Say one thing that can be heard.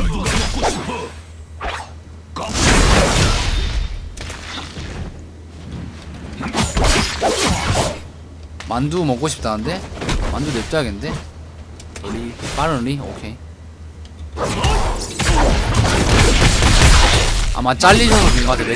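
Game combat sounds crash and whoosh.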